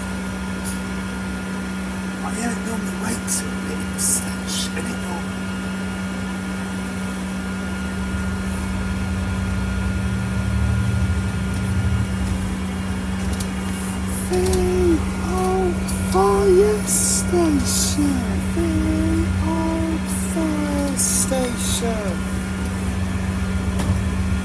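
A bus engine hums and rumbles steadily, growing louder as the bus pulls away.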